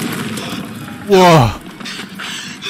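A huge beast lets out a loud, deep roar that drops in pitch.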